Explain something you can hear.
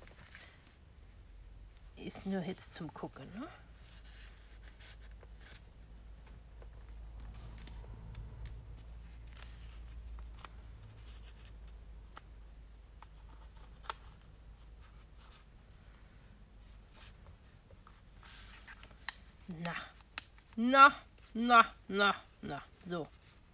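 Paper rustles and crinkles softly as it is handled.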